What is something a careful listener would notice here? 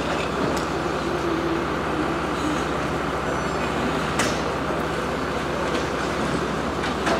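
A fire engine's motor idles with a steady low rumble.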